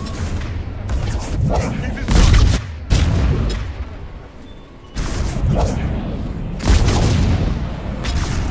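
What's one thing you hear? Energy blasts boom and crackle.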